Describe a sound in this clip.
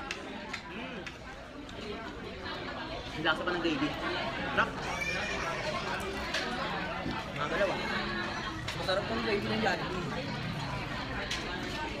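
Plastic forks clink and scrape on food containers.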